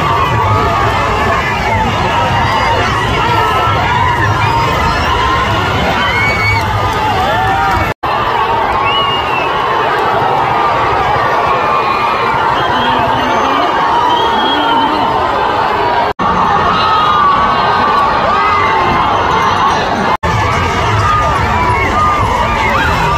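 Many men whistle shrilly in a crowd.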